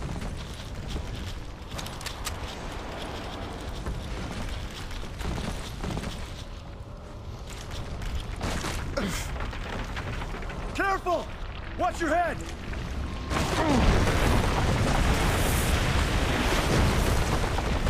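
Heavy footsteps crunch on rubble.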